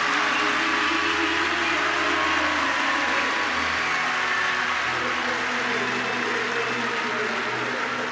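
A large crowd cheers and roars in an open stadium.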